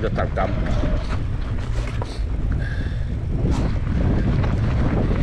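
Wind rushes loudly over a microphone outdoors.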